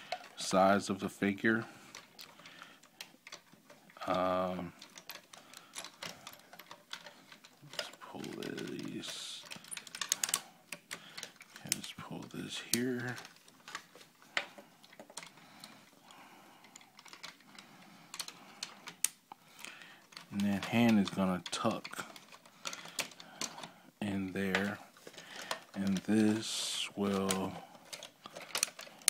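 Plastic parts of a toy click and snap as hands twist them.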